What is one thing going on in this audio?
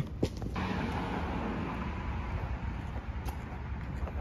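Footsteps walk along a pavement outdoors.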